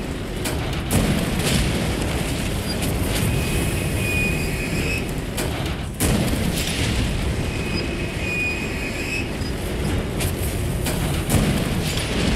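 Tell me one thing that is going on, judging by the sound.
A heavy cannon fires with a loud blast.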